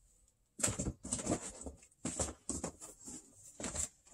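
Record sleeves rustle and slide against each other.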